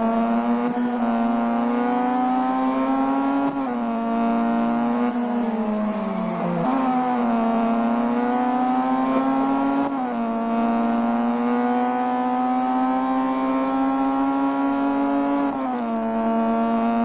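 A racing car engine roars steadily at high revs, dropping in pitch with each gear change.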